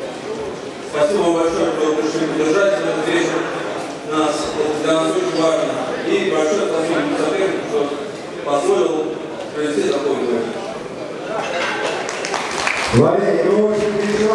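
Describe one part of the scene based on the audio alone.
A man announces loudly through a microphone over loudspeakers in a large echoing hall.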